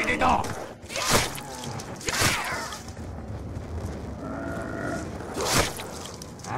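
A blade strikes flesh with a wet thud.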